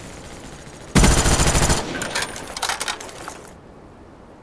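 An automatic rifle fires a burst of shots.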